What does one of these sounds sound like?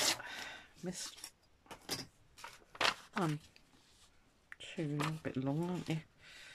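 Paper sheets rustle and slide as hands handle them.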